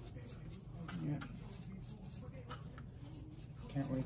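A brush dabs and strokes through wet hair.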